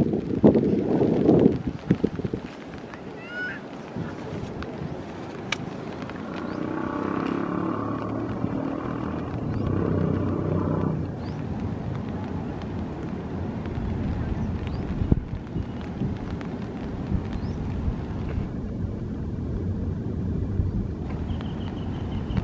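Wind blows and buffets loudly outdoors.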